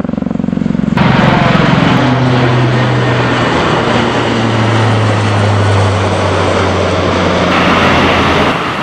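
A four-engine propeller plane drones loudly overhead.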